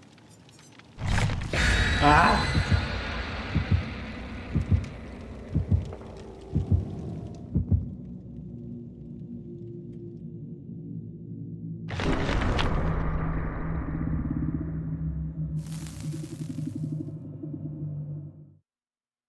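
A deep whoosh swells and fades.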